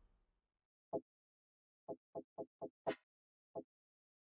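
Short soft menu clicks tick several times.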